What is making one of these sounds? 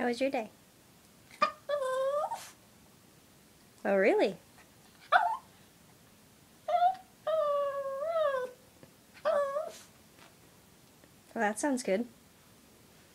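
A small dog whines and yowls in drawn-out bursts.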